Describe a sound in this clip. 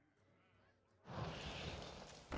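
A game card snaps onto the table with a flourish.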